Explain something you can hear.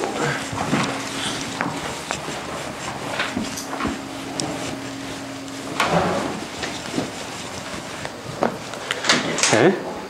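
An eraser rubs on a whiteboard.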